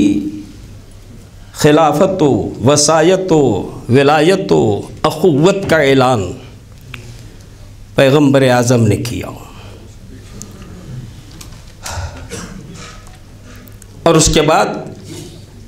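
A middle-aged man speaks with feeling into a microphone, his voice ringing in a large room.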